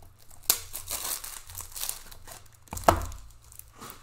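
A plastic wrapper crinkles and tears.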